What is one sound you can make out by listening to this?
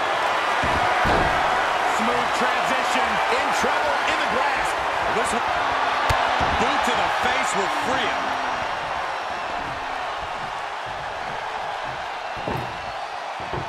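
Heavy thuds ring out as wrestlers slam onto the ring mat.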